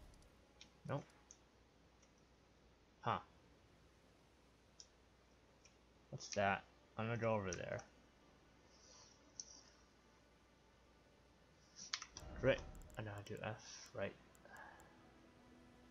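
Menu clicks sound in short blips.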